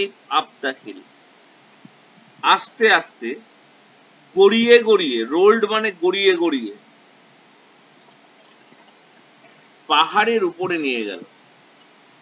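A middle-aged man speaks with animation close to the microphone, in short bursts with pauses.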